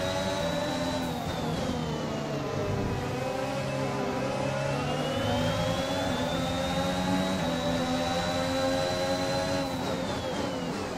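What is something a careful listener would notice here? A racing car engine screams at high revs, its pitch falling and rising with the gear changes.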